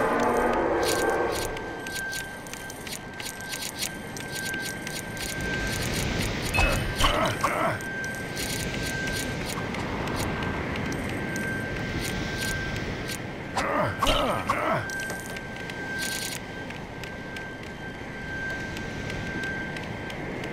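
Small plastic pieces clink and jingle as they are picked up.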